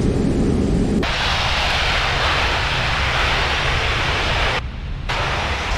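Jet engines roar loudly with a hissing rush.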